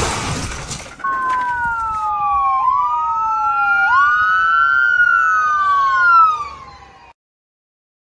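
An ambulance siren wails up and down.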